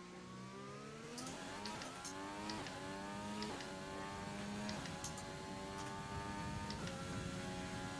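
A racing car engine revs high and climbs through the gears.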